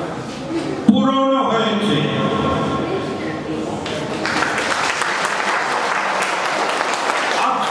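An elderly man sings into a microphone through loudspeakers.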